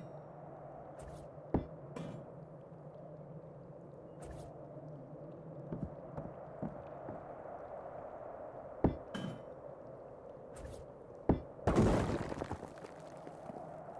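Wooden boards knock and clatter as they are pulled loose.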